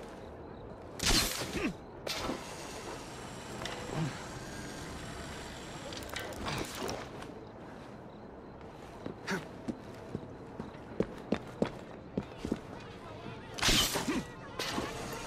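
A figure lands with a heavy thud.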